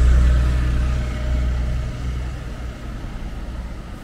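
A bus engine rumbles close by as the bus pulls away.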